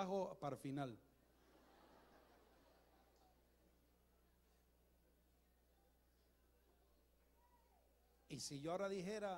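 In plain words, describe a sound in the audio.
A crowd murmurs quietly in prayer.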